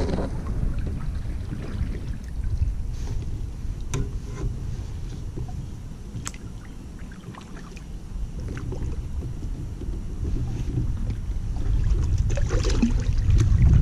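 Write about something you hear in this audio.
A paddle dips and splashes in water.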